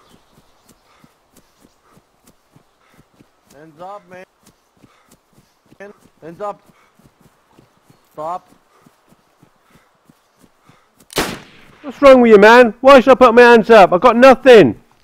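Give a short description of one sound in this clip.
Footsteps thud quickly and evenly on grass.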